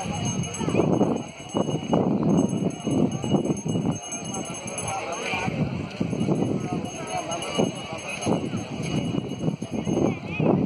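A crowd of people chatters at a distance.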